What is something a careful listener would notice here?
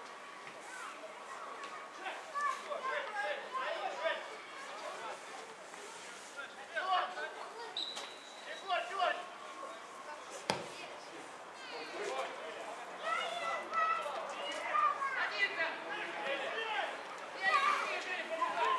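Men shout and call to each other outdoors, some way off.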